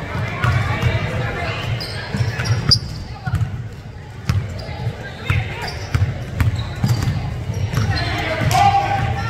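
A basketball bounces repeatedly on a wooden floor in a large echoing gym.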